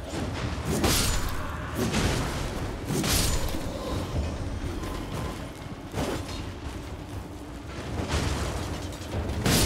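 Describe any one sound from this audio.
Hooves thud on the ground at a gallop.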